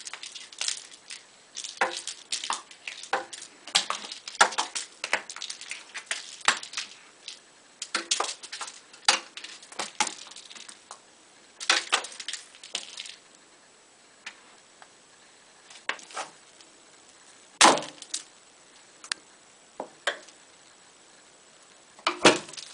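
A toy mouse on a string bumps and rattles against the floor.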